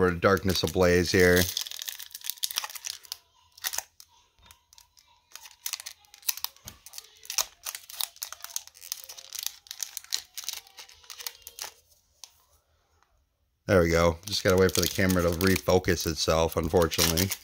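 A foil wrapper crinkles and rustles as it is torn open by hand.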